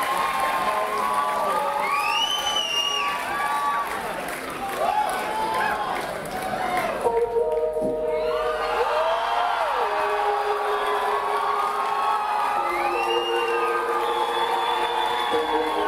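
A guitar plays sustained notes.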